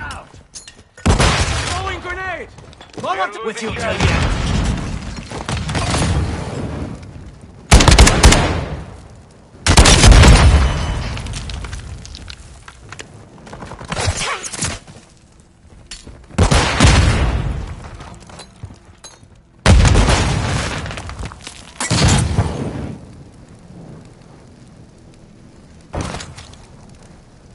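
Gunfire rattles in loud, sharp bursts.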